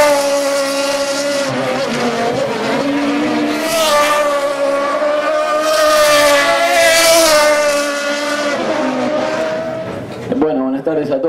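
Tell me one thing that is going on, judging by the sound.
A race car engine roars at high revs as cars speed past.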